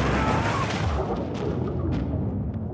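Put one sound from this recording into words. Water bubbles and gurgles, heard muffled from underwater.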